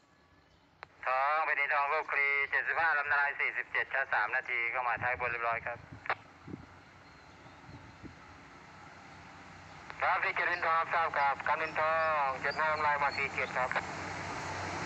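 A train horn blows long, wavering blasts from a distance, then closer.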